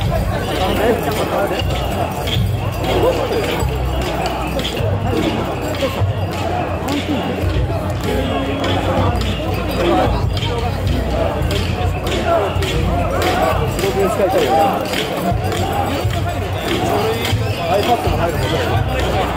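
A large crowd of men chants loudly and rhythmically outdoors.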